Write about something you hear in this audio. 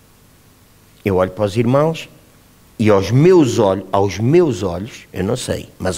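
A middle-aged man speaks with animation into a microphone in a slightly echoing room.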